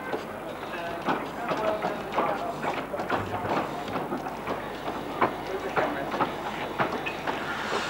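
Metal wheels click over rail joints.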